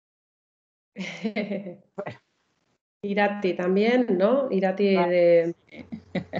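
A young woman speaks brightly over an online call.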